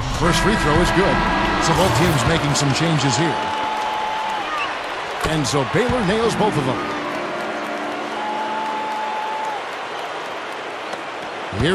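A large crowd murmurs and cheers in a big echoing arena.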